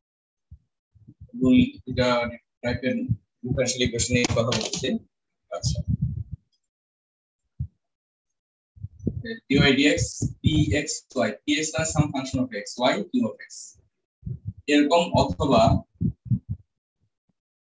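A man lectures through an online call.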